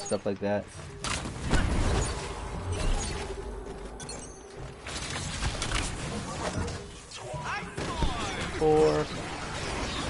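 Blasts and impacts crash during a fight.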